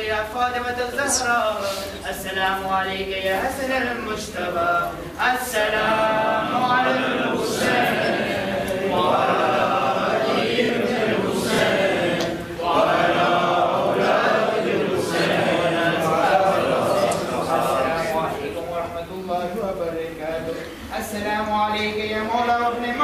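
A man chants a prayer in a long, melodic voice, echoing in a large hall.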